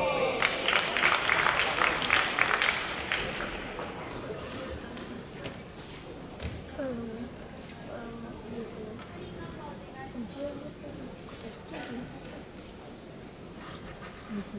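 Young women chatter close by.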